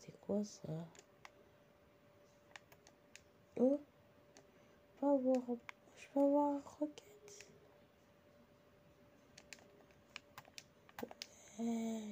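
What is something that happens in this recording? Video game sound effects click and pop from a small speaker.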